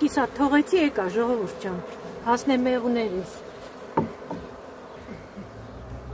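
A canvas cover rustles as it is pulled over a hive.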